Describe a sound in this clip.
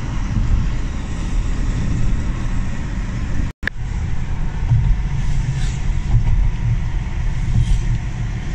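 A car's engine hums steadily as it drives along a road.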